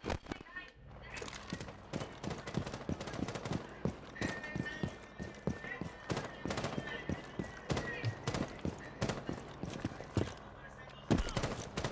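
Footsteps run quickly on hard ground.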